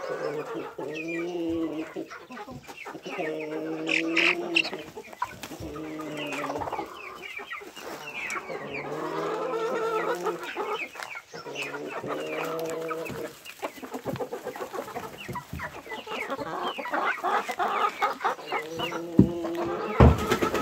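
Chicks cheep in quick, high chirps.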